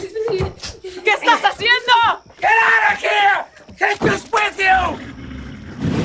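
A woman shouts angrily, close by.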